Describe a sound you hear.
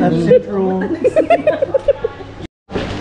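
A young woman laughs in short bursts close to the microphone.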